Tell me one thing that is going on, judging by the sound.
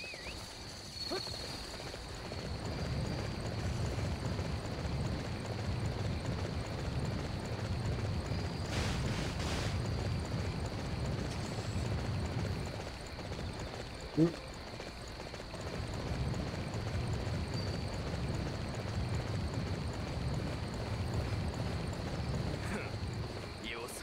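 A horse gallops with heavy, rhythmic hoofbeats.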